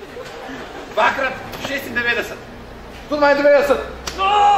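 Young men talk and call out with animation close by, outdoors.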